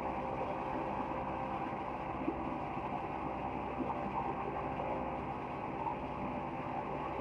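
Wooden boards knock and clatter as they feed through a woodworking machine.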